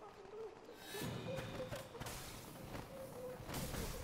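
A sword swings and strikes with a heavy slash.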